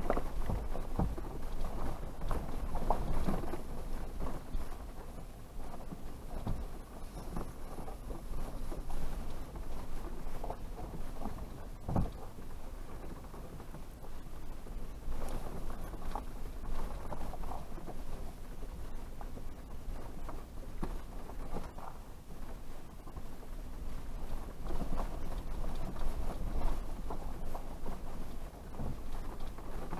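Tyres crunch over dirt and dry leaves.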